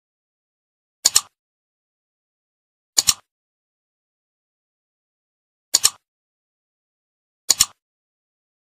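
A mouse button clicks sharply.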